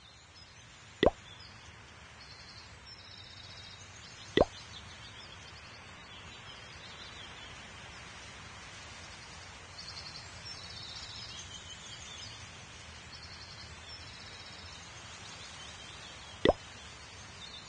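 Short button clicks sound a few times.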